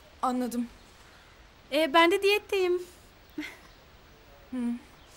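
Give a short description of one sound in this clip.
A young woman speaks in short, quiet phrases close by.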